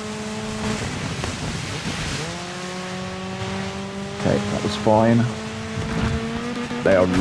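A rally car engine roars steadily at high revs.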